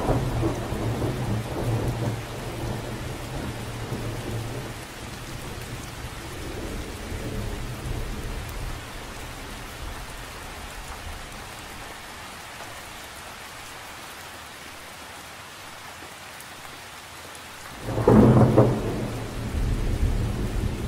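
Raindrops patter lightly on the surface of a lake.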